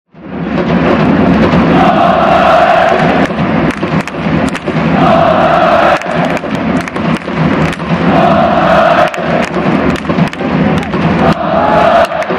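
A large crowd of fans chants loudly and rhythmically in a big open stadium.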